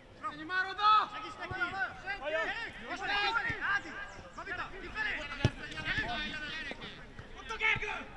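A football is kicked on grass outdoors.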